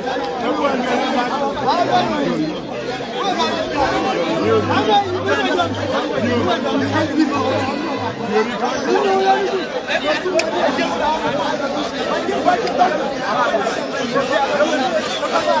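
A large crowd of men and women sings and chants loudly outdoors, close by.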